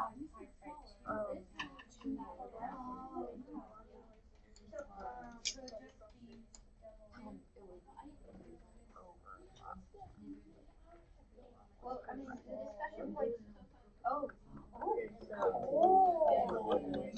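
Several children chatter and talk over each other nearby.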